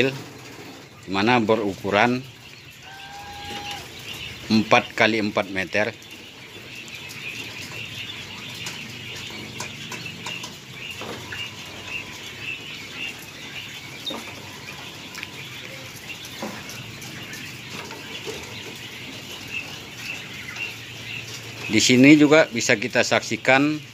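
Quail chirp steadily from their cages.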